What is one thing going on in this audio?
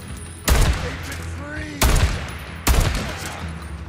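Gunshots crack loudly, one after another.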